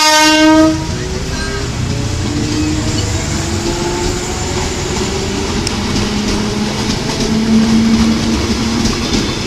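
A train's electric motors whine, rising in pitch.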